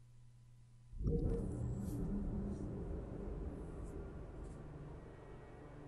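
Wind rushes loudly past a falling figure.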